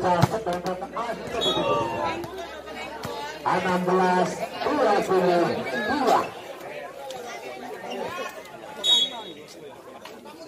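A crowd of spectators shouts and cheers loudly.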